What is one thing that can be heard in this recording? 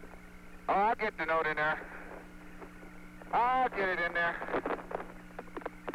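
A man speaks in short bursts over a crackly radio link.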